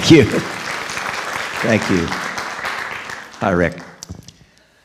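An elderly man speaks in short bursts through a microphone in a large echoing hall.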